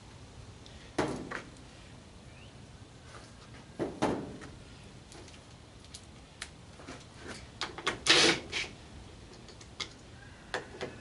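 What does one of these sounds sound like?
Hands knock and clatter on a metal appliance lid.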